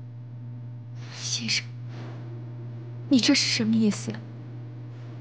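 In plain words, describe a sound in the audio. A young woman asks questions in an upset voice, close by.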